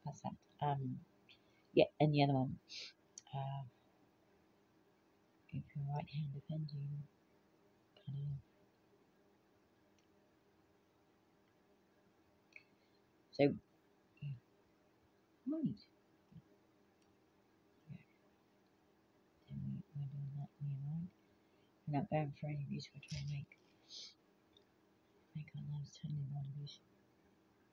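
An older woman talks calmly and close by, in short bursts with pauses.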